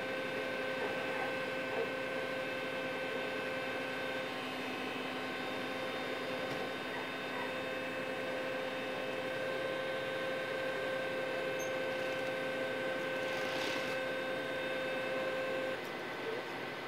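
A large engine idles steadily nearby.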